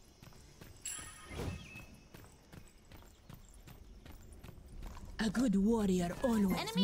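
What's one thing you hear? Quick footsteps patter along a path.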